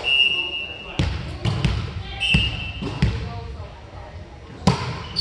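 A volleyball thumps off hands and the floor in a large echoing gym.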